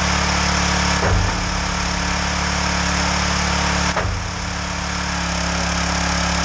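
A hydraulic log splitter's ram whines and shifts as it works.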